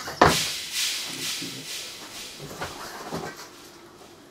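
Objects clatter as a young man rummages through a cupboard.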